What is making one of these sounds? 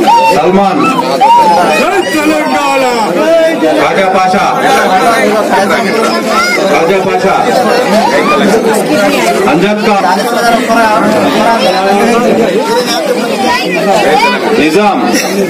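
A man speaks into a microphone to the crowd.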